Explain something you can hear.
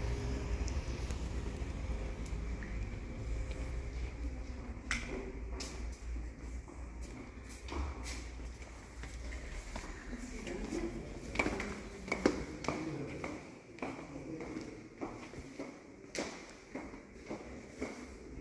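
Footsteps tap on a hard floor and then climb stairs, in an echoing hall.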